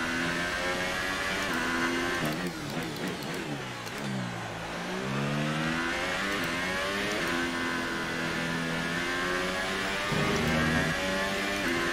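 A racing car engine screams at high revs, dropping in pitch as it slows for a corner and rising again as it speeds up.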